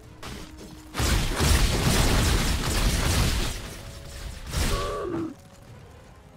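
Magic spells crackle and burst in a loud clash of battle sounds.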